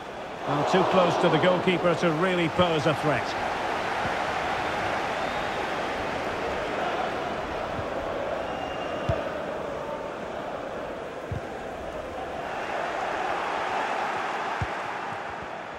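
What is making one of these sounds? A large stadium crowd roars and murmurs steadily.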